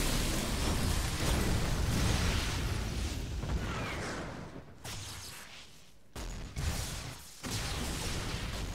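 Magic blasts whoosh and crackle in a fast fight.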